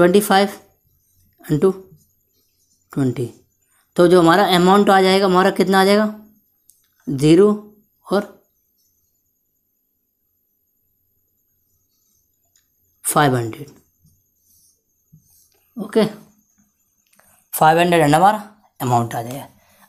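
A young man speaks calmly and clearly, close by, in short phrases with pauses.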